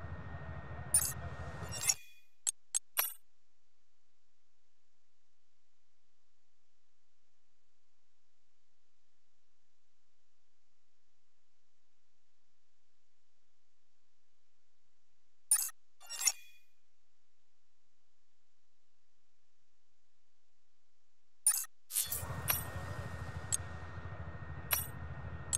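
Short menu clicks and whooshes sound as selections change.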